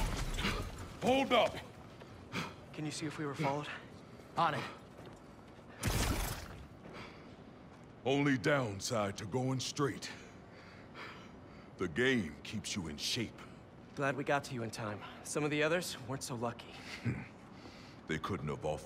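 A man speaks in a deep, gruff voice nearby.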